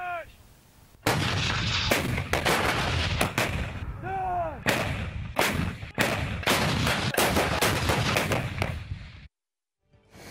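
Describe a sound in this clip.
Artillery guns fire with loud booming blasts.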